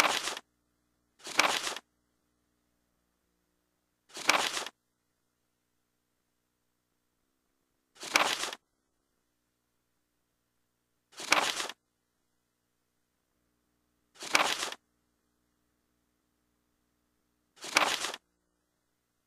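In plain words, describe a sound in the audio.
A short papery swish sounds again and again, every few seconds.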